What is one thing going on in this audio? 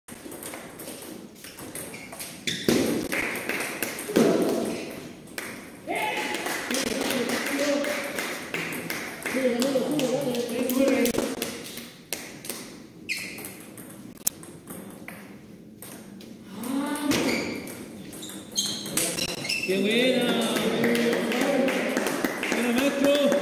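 A table tennis ball clicks back and forth off paddles and tables in an echoing hall.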